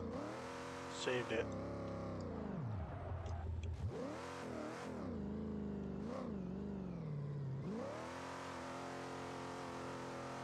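A car engine roars and revs up and down.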